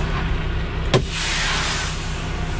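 A truck's air brakes hiss loudly.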